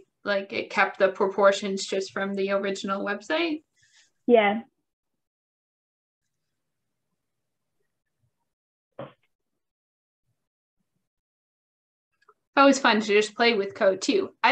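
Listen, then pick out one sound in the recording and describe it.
A woman speaks calmly and clearly through a computer microphone.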